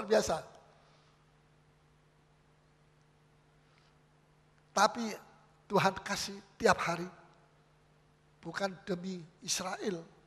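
A middle-aged man preaches with animation into a microphone, in short bursts.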